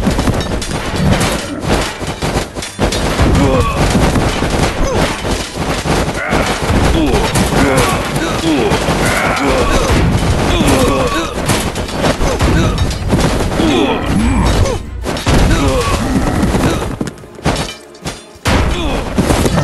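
A giant smashes the ground with heavy thuds.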